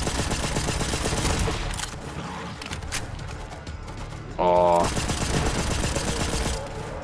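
A gun reloads with metallic clicks.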